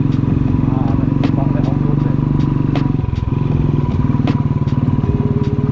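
A motorcycle engine thumps steadily at low speed.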